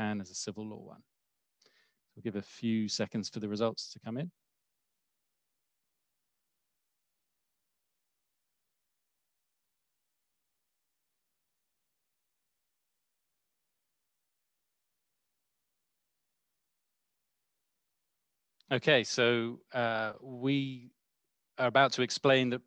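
A man speaks calmly over an online call, in short bursts with long pauses.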